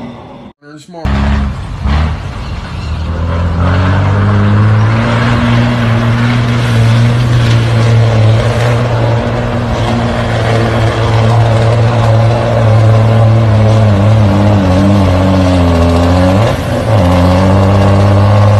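A truck's diesel engine roars steadily as it climbs toward the listener.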